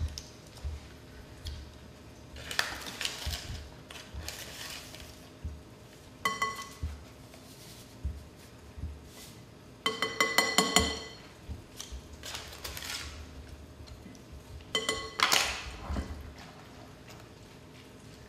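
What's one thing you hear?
Leaves rustle as a woman tears them by hand.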